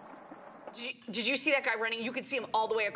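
A woman talks with animation through a microphone.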